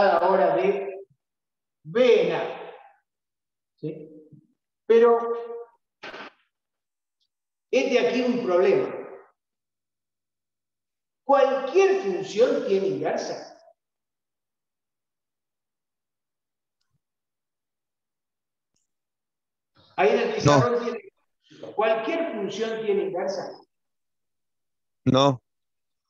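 A middle-aged man speaks calmly and explains, heard close through a microphone, with pauses.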